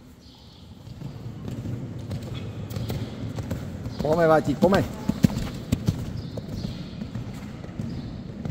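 A horse's hooves thud rhythmically on soft sand.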